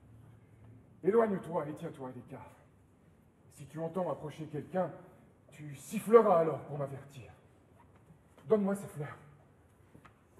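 A man speaks loudly and dramatically in a large echoing hall.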